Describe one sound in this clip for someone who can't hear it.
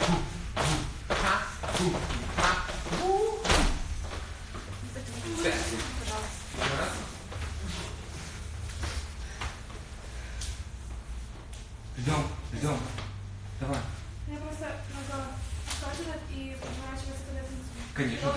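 Sneakers stomp and squeak on a hard floor.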